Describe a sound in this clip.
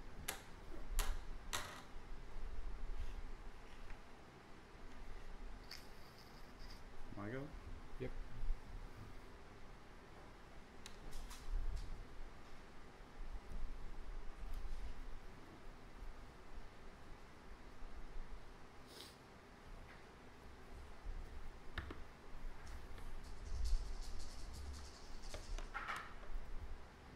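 Plastic game chips click and clack together on a table.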